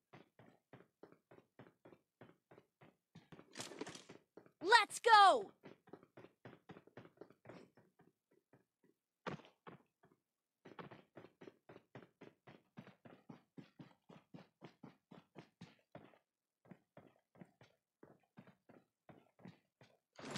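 Footsteps patter quickly and steadily as a game character runs.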